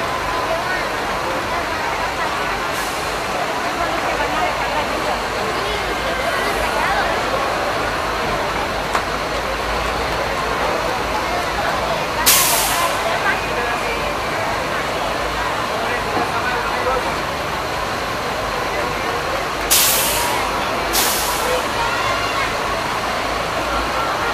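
A crowd of onlookers chatters and cheers outdoors.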